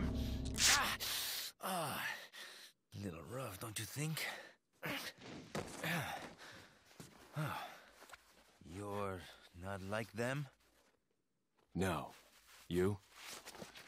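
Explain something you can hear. A man speaks in a low, strained voice, close by.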